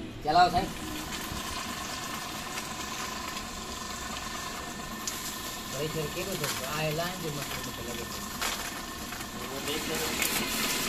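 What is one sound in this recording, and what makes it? Water gushes from a pump and splashes onto the ground.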